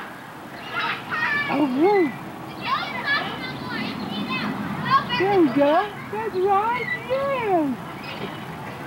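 A man talks playfully to a baby, close by.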